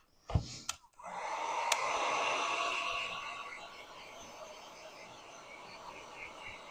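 A heat gun blows with a steady whooshing roar.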